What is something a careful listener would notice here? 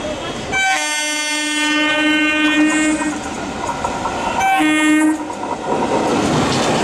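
A train rumbles along the tracks, drawing closer.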